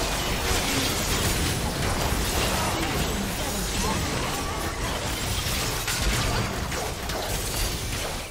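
Game spell effects crackle and burst in a busy fight.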